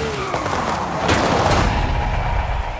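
A car crashes with a loud crunch into bushes.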